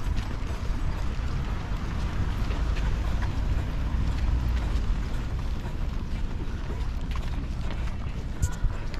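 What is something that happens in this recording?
Running shoes patter steadily on pavement close by.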